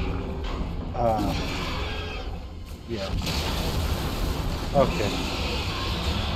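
A large creature screeches and roars.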